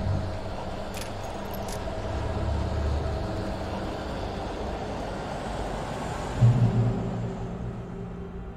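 Footsteps run over gravel and undergrowth.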